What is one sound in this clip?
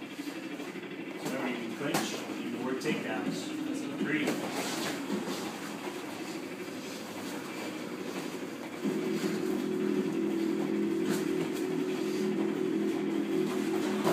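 Gloved punches thud against headgear and body.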